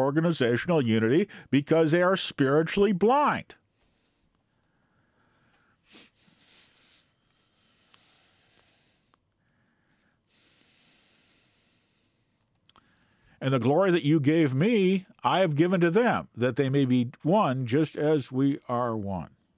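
An elderly man speaks calmly and closely into a microphone, with pauses.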